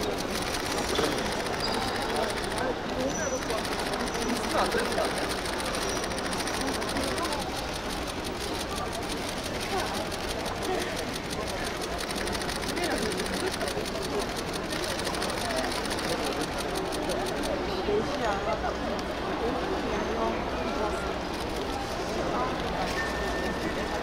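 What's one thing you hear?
Young women chat and talk over each other.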